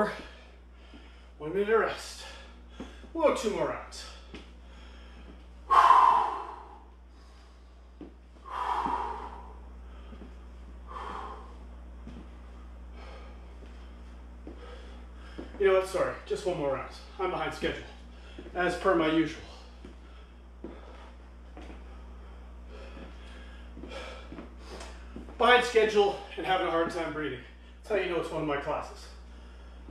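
Sneakers tap and scuff on a wooden floor.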